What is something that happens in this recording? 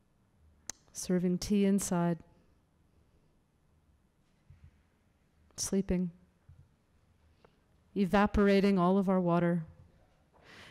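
A man speaks through a microphone in a large echoing hall, pausing between phrases.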